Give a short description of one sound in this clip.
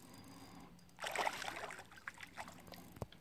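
An animal splashes as it dives into calm water.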